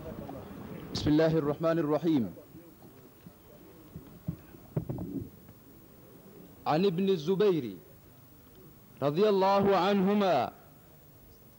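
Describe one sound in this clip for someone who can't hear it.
A man chants loudly in bursts through a microphone.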